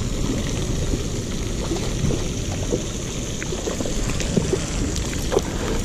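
A small fish splashes at the water's surface.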